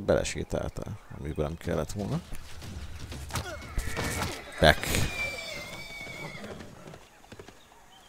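Soldiers shout in a battle.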